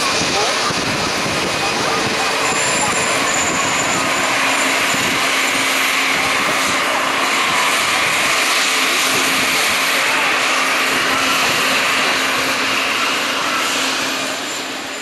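A jet airliner's engines roar and whine steadily close by, then fade slightly.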